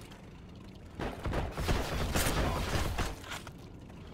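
A rifle fires a loud, booming shot.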